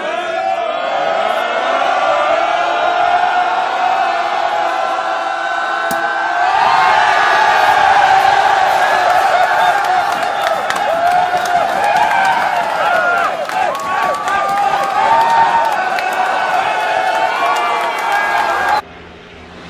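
A crowd of men and women cheers and shouts loudly up close.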